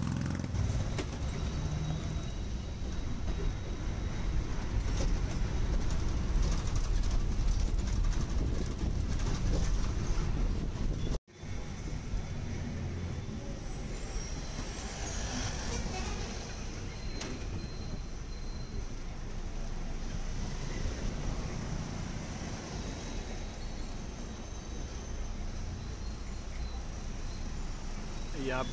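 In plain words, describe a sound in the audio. Traffic passes close by on a busy street.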